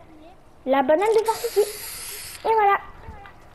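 A spray can hisses briefly.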